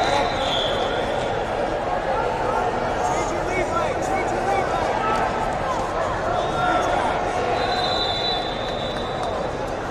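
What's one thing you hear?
Shoes squeak on a mat.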